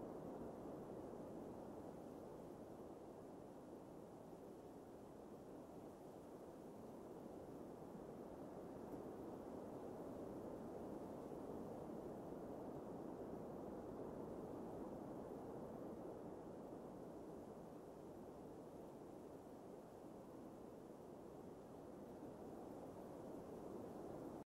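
Water laps and ripples gently.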